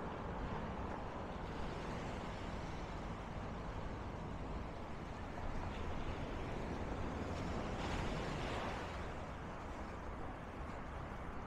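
Wind buffets outdoors with a steady low rumble.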